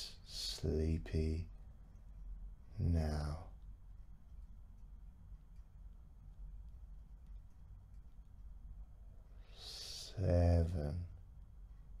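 A middle-aged man speaks slowly and calmly into a close microphone, with long pauses.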